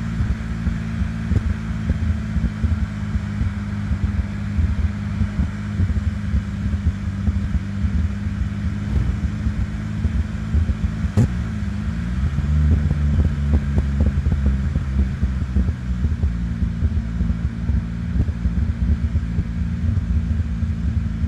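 Tyres roll over asphalt.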